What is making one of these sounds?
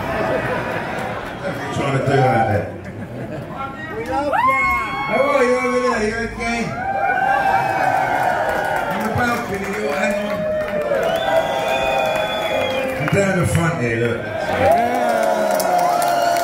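A live rock band plays loudly in a large hall.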